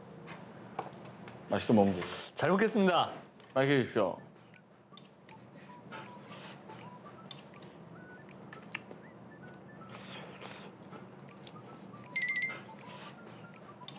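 Chopsticks and spoons clink against dishes.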